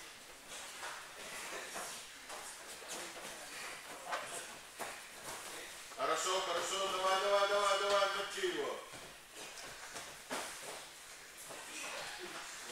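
Feet thump and shuffle on a padded floor.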